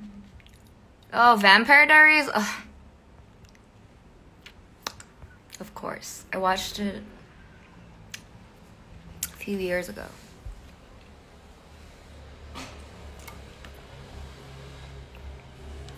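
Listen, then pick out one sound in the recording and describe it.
A young woman sips from a plastic bottle.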